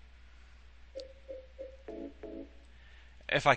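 A game menu gives short soft beeps.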